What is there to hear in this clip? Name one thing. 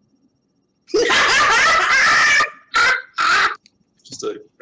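A man laughs loudly over an online call.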